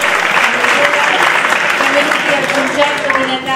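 A woman speaks through a microphone in a large echoing hall.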